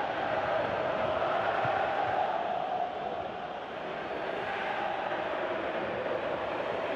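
A large crowd roars and cheers steadily in a stadium.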